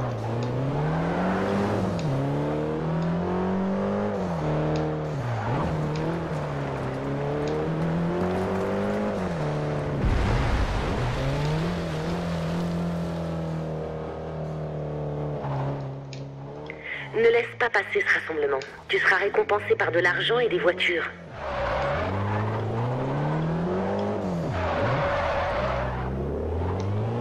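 A car engine revs up and down as gears change.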